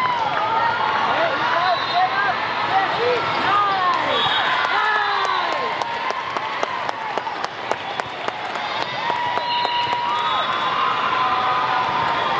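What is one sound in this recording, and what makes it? Sneakers squeak sharply and often on a hard court in a large echoing hall.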